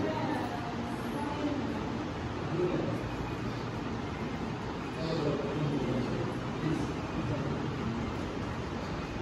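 A man speaks calmly to a room, his voice echoing.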